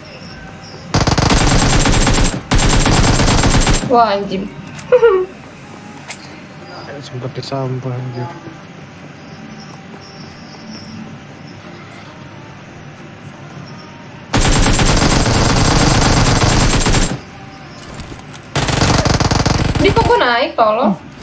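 Automatic gunfire rattles in fast bursts.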